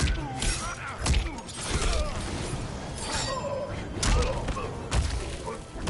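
Heavy blows thud and crack in a fast fight.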